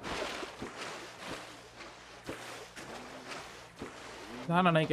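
Water sloshes and splashes with swimming strokes.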